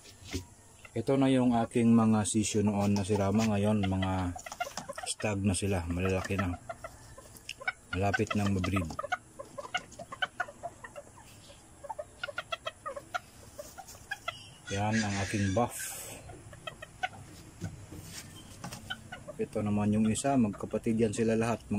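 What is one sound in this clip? A rooster crows nearby, loud and drawn out.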